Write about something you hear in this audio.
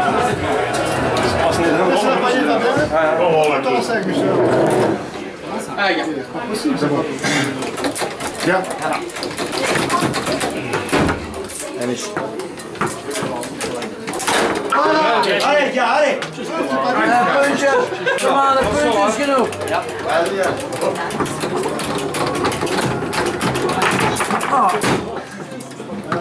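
Several men talk and shout nearby in a noisy room.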